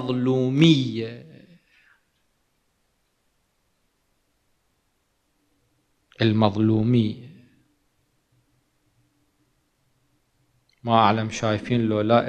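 A man speaks slowly and earnestly into a microphone, pausing between phrases.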